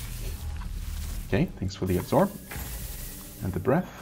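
A magic blast bursts with a bright whoosh.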